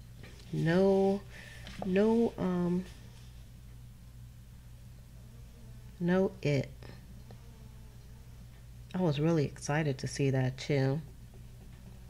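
A woman speaks calmly and close to a microphone, in short bursts.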